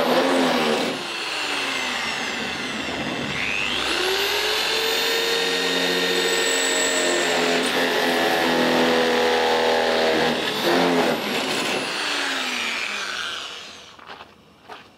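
An electric drill whirs in short bursts.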